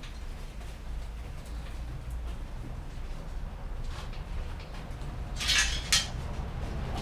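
Metal bicycle parts clink and rattle as they are handled up close.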